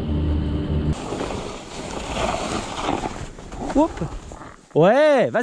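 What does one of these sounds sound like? A snow scooter slides and hisses over snow.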